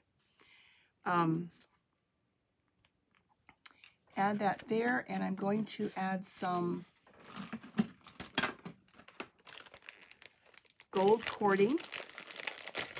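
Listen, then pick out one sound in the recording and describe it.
An older woman talks calmly into a microphone, close by.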